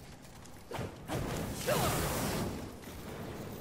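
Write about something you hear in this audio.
Fire whooshes and roars in a sudden burst.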